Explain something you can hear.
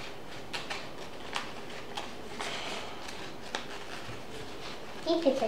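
Paper rustles and crinkles close by as it is handled.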